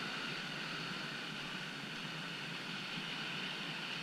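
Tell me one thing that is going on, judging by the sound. A paddle splashes in the water.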